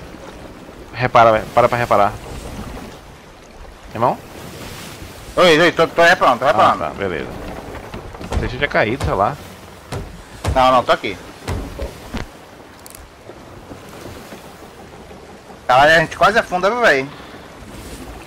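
Rough sea waves crash and surge against a wooden ship.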